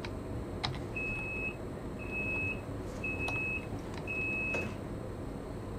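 A train's door warning beeps.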